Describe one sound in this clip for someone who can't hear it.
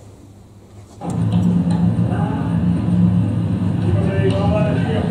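A man speaks loudly into a microphone over loudspeakers in an echoing room.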